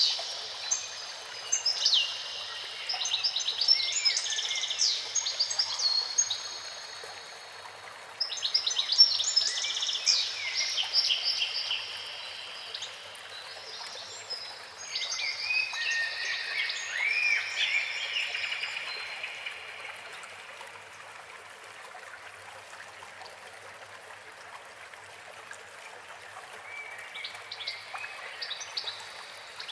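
A fountain of water splashes and gushes steadily.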